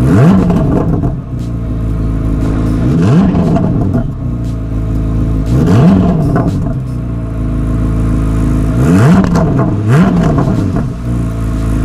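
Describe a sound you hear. A sports car engine revs sharply several times and falls back.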